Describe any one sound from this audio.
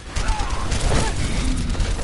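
Explosions boom and crackle nearby.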